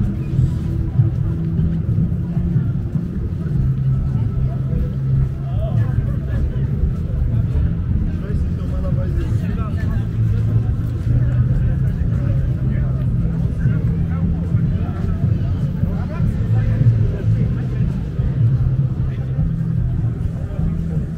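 Men and women chat and murmur as they walk past outdoors.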